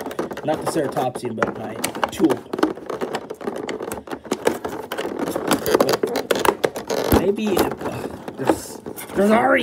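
Plastic packaging crinkles and rustles close by as it is handled.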